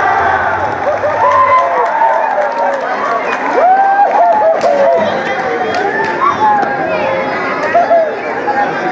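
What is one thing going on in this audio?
Men whoop and shout with excitement.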